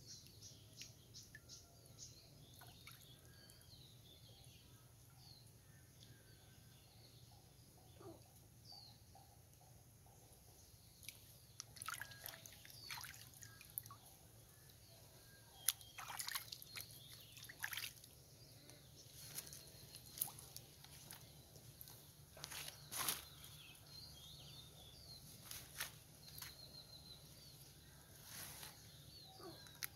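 Water splashes softly as hands move in a shallow pond.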